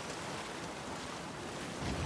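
A person splashes while wading through water.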